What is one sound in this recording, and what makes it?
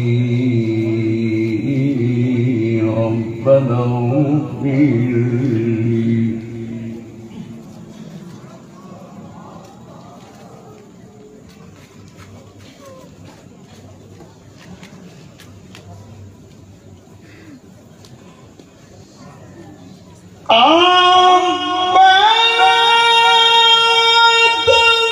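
An elderly man chants in long, drawn-out notes through a microphone.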